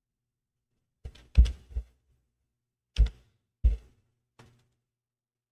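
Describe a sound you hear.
A computer mouse clicks a few times.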